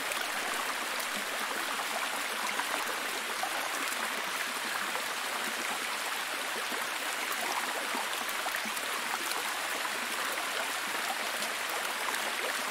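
A waterfall splashes and rushes steadily over rocks.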